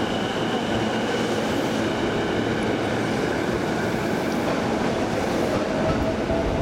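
Train brakes hiss loudly as the train stops.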